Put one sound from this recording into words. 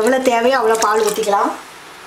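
Milk pours into a pot with a splash.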